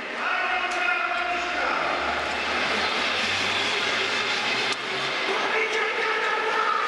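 A large crowd cheers and chants in a big echoing hall.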